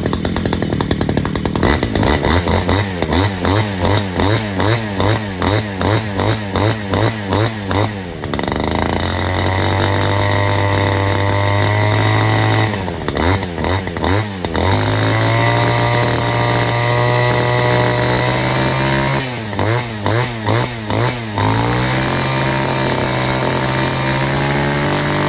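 A small petrol engine runs loudly close by, sputtering and surging in bursts, then idling steadily.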